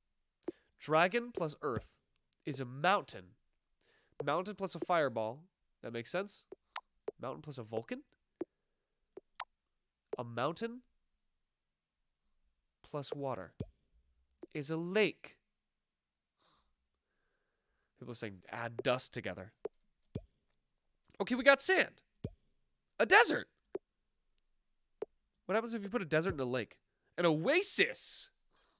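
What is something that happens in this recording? A young man talks with animation into a close microphone, pausing now and then.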